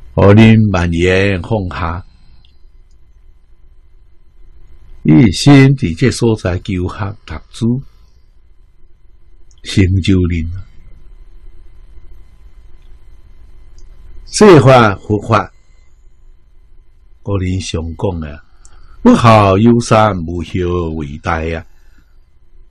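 An elderly man speaks calmly into a microphone, in phrases with pauses.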